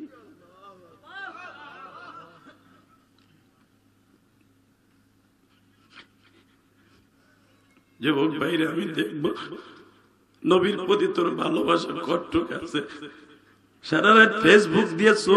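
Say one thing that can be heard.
A man chants in a melodic voice through a microphone and loudspeakers.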